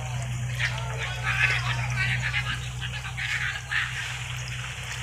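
Fish splash and churn in shallow water close by.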